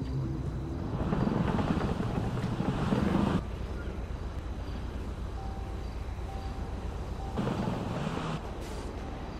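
A sports car engine roars as the car speeds off.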